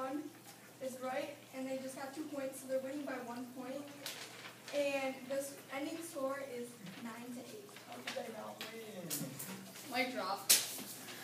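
Young girls speak in turn, performing a scene.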